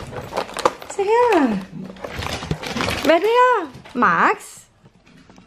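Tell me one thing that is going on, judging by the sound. A small dog whines in high, rising and falling cries.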